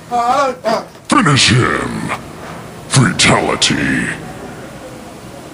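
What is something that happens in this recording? A young man cries out and shouts close by.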